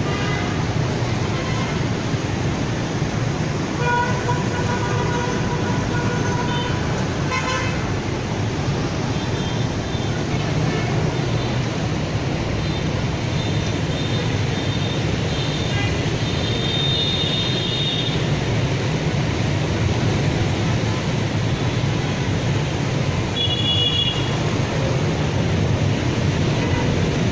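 Dense traffic roars steadily below, outdoors.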